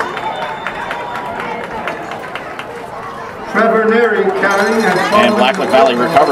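A crowd murmurs and cheers outdoors at a distance.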